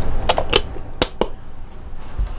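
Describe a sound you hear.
A kettle lid clicks into place.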